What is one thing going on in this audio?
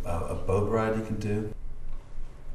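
A man speaks briefly, close by.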